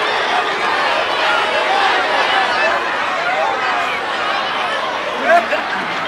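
A young man shouts with excitement nearby.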